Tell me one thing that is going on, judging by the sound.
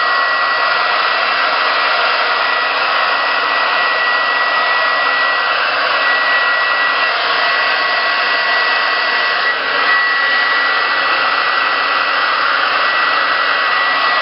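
A hair dryer blows with a steady roar and a high whine close by.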